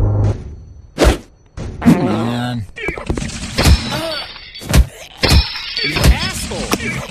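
Punches land with sharp, heavy thuds.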